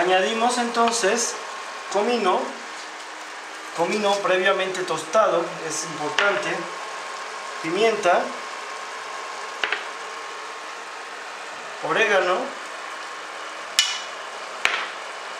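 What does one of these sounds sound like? A wooden spoon stirs shellfish in a pan, the shells clattering.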